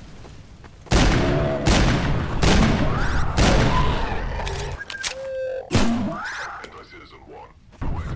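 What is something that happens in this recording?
A revolver fires loud shots.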